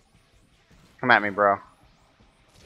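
A young man speaks briefly and loudly, close to a microphone.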